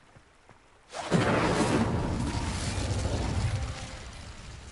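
Fire roars and crackles loudly, then dies down.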